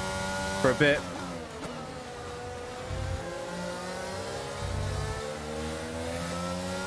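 A racing car engine whines loudly, its pitch rising and falling with gear changes.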